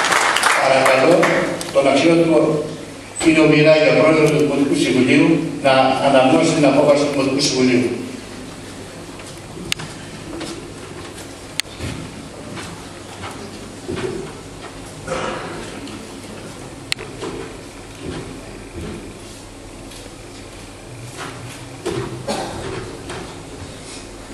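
A man speaks through a microphone and loudspeakers in an echoing hall.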